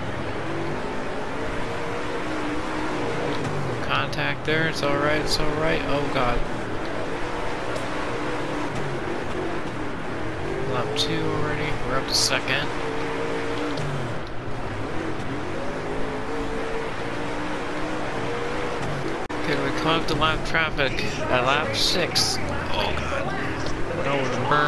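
A race car engine roars and revs loudly, rising and falling in pitch.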